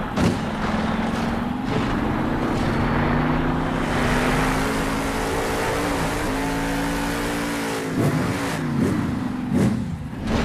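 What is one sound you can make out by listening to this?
Huge tyres thud and crunch as a monster truck lands on dirt.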